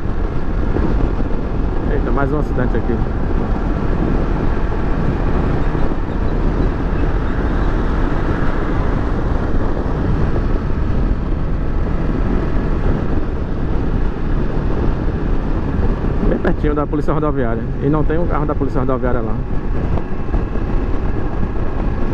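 Wind roars past a motorcycle rider at speed.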